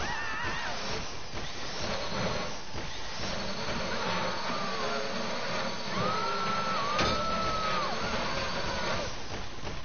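An electric drill whines and grinds against metal.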